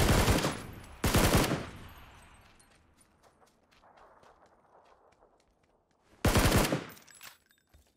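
Loud gunshots ring out and echo.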